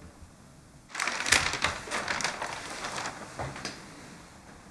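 A newspaper rustles as its pages are handled.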